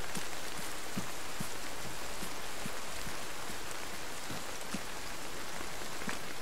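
Footsteps thud steadily on grass.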